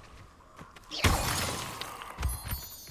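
A magic spell bursts with a loud rushing whoosh.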